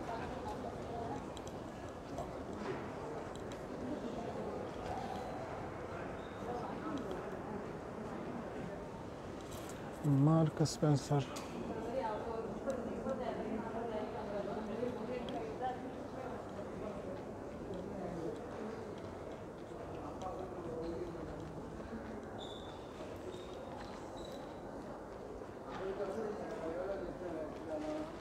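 Many people chatter in a large, echoing indoor hall.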